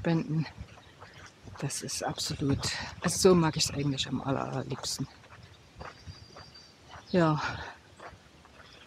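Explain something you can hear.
A middle-aged woman talks calmly close by, outdoors.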